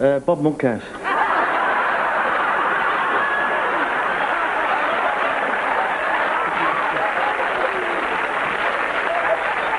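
A studio audience laughs loudly and steadily.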